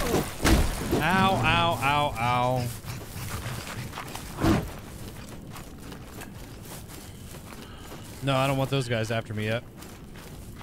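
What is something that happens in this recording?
A man talks into a close microphone.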